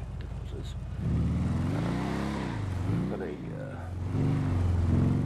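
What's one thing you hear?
A quad bike engine revs up and pulls away.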